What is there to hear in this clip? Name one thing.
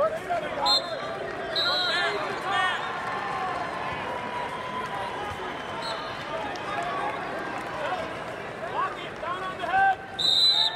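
A large crowd murmurs in a big echoing arena.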